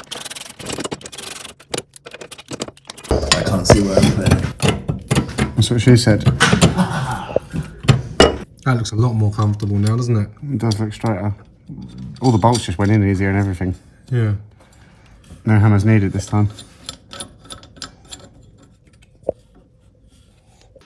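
Metal parts clink and knock under handling.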